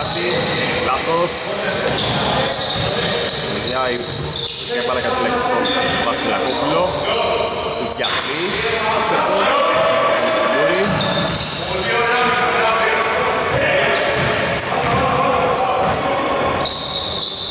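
Men shout to each other in a large echoing hall.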